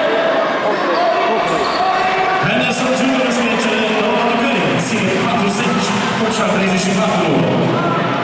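Sneakers squeak on a court floor as basketball players run.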